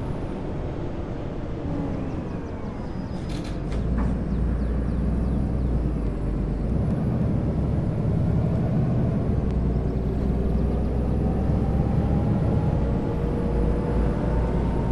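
A bus engine hums and rumbles steadily while driving.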